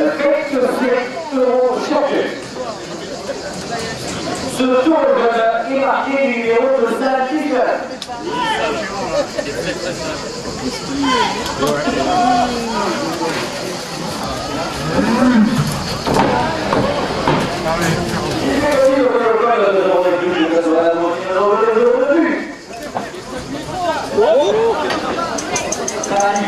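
A large outdoor crowd murmurs and cheers.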